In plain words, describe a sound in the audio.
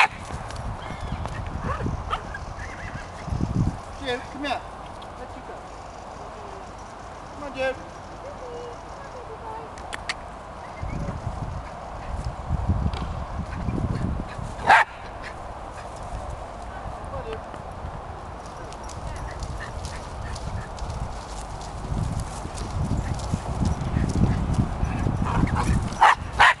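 Wind rumbles across an open microphone outdoors.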